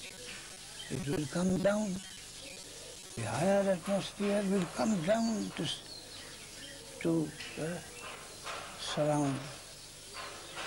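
An elderly man speaks calmly, in short phrases with pauses.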